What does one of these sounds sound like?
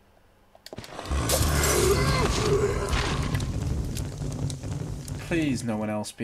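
A fire bursts into flames and roars loudly, then dies down to a crackle.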